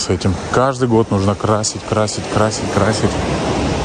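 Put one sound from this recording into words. Small waves wash onto a pebble shore.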